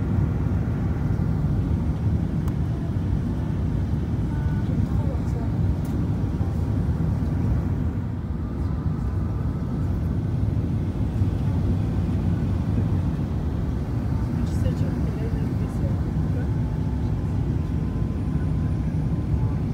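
Jet engines roar steadily, heard from inside the cabin.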